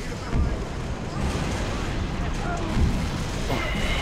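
Gunfire and blasts ring out in loud bursts.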